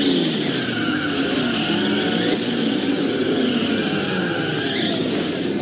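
Tyres screech as they spin on the road.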